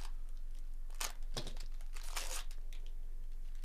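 A foil wrapper crinkles and tears open.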